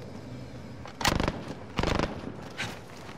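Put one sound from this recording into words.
A gun's metal parts clack as a rifle is picked up.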